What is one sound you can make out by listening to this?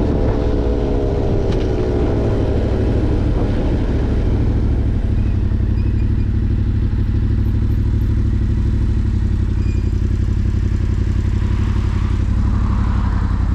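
A motorcycle engine drones steadily close by, falling in pitch as it slows.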